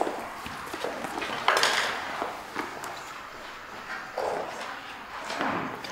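Footsteps thud and creak across a floor.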